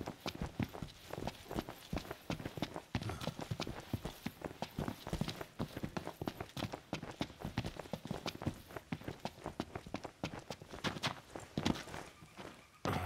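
Quick footsteps run over dirt and wooden boards.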